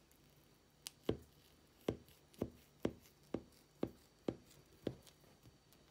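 A knife taps and scrapes as it cuts through a cake.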